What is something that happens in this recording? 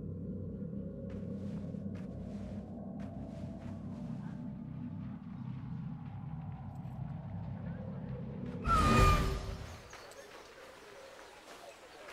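Footsteps crunch on sand and stone.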